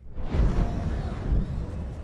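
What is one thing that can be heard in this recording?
A motorcycle engine roars through a tunnel.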